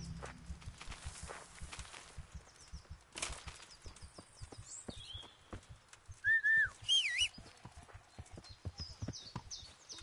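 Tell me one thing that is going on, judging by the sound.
Footsteps tread steadily over grass and leaves.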